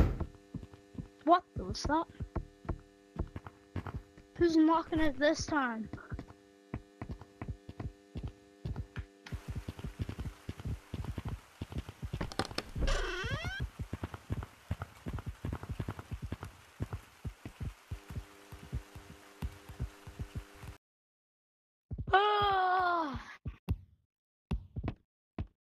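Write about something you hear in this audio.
Hands thump and patter quickly on a floor.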